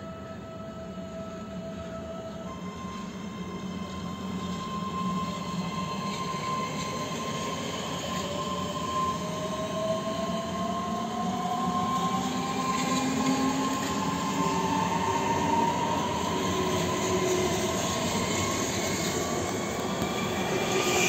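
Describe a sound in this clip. An electric train rolls past close by, its motors whining higher as it speeds up.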